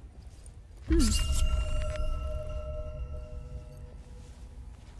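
A bright chime rings out once and fades.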